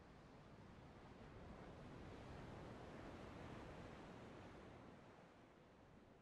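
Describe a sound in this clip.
Sea waves wash softly in the distance.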